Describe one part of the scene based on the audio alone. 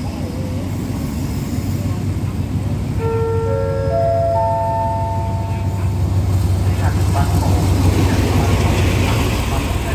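A diesel train engine rumbles closer and rolls past.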